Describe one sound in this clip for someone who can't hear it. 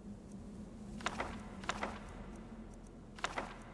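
Soft menu clicks sound a few times.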